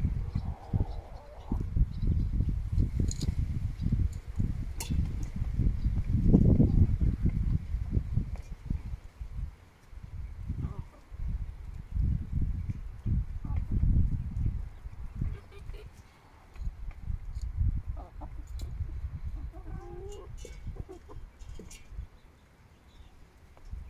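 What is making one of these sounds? Chickens peck at the dry ground.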